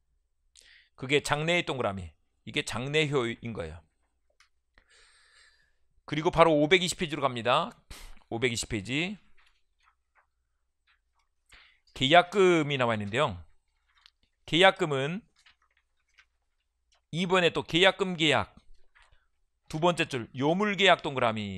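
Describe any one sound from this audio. A middle-aged man lectures into a microphone in short bursts, speaking with emphasis.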